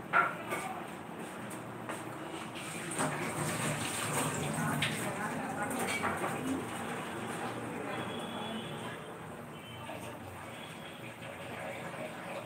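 An egg sizzles in oil in a wok.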